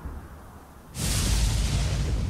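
Thunder cracks and rumbles loudly.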